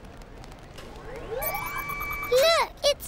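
A young girl speaks brightly and close by.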